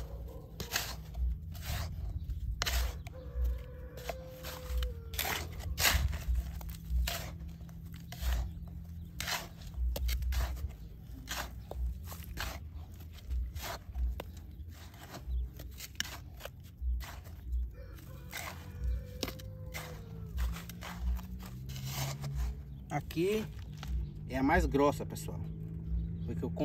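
A small trowel scrapes and digs into dry sandy soil.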